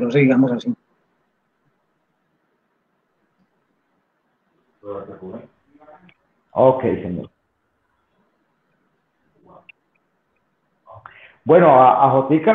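A man speaks with animation over an online call, with pauses between phrases.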